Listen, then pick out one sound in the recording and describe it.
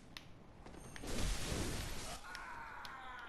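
A blade swings and strikes with a sharp whoosh.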